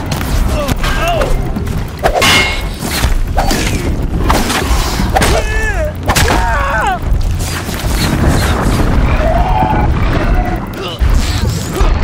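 Heavy blows and weapon strikes land in a fast, noisy fight.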